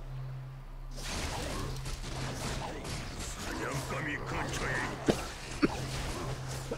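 Weapons clash and strike in a busy fight.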